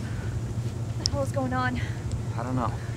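A young woman asks a worried question.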